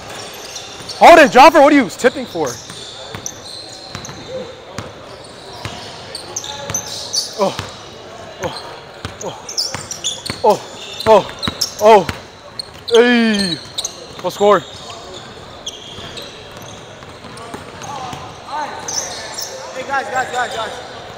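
Young men shout and call out in a large echoing gym.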